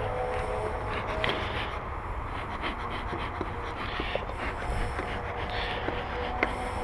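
A bee smoker's bellows puff out smoke with a soft hiss.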